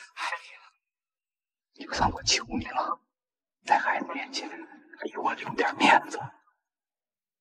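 An elderly man speaks pleadingly, close by.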